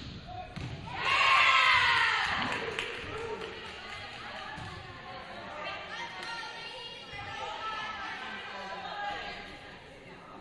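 Young women players shout and cheer in an echoing gym.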